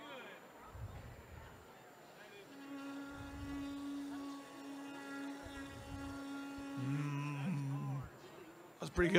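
A horn is blown in long, steady, wavering blasts nearby.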